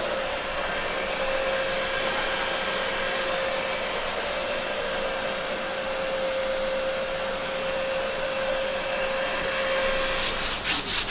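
A floor scrubbing machine hums steadily.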